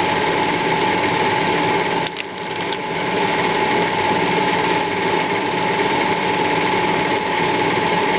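A lathe motor hums steadily as the chuck spins.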